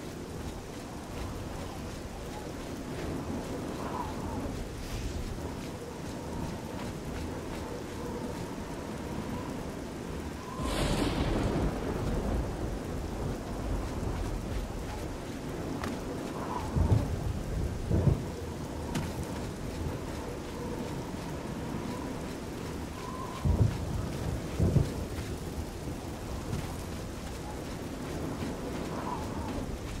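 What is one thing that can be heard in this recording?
Rain falls steadily all around.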